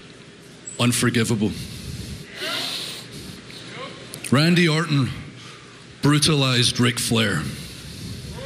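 A man speaks slowly and intensely through a microphone, with pauses between phrases.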